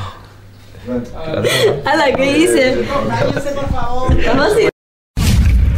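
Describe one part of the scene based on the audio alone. A young man laughs and talks.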